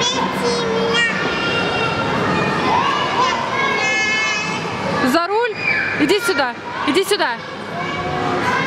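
A little girl babbles and squeals close by.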